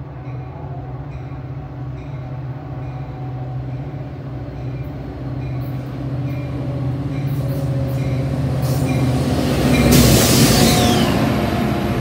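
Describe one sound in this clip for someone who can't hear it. A diesel locomotive rumbles steadily as it approaches, growing louder.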